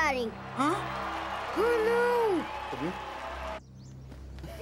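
A young boy speaks excitedly.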